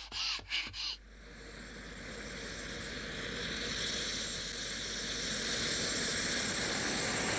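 A large craft's engine hums and roars steadily.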